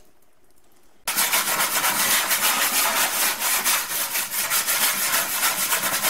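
A hand scrubs a surface with quick, rough scouring strokes.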